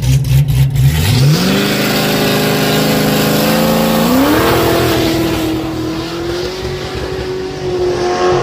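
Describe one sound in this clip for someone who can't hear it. A car engine roars as the car accelerates away and shifts gears.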